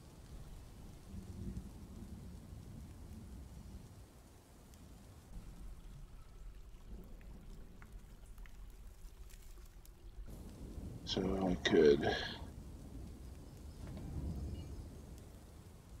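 A man speaks quietly and casually into a close microphone.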